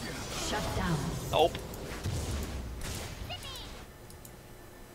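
Spells and blows clash in a brief fight with bursts of magical effects.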